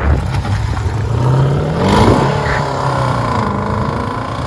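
A car engine revs and roars as the car accelerates away.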